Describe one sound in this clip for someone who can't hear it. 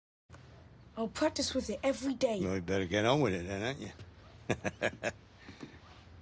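A man speaks calmly to a boy, close by.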